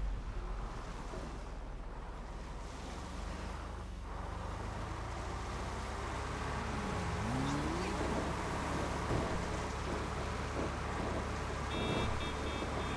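A heavy tank engine rumbles steadily as it drives along a street.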